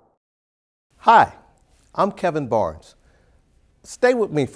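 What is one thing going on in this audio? A man speaks warmly and clearly into a close microphone.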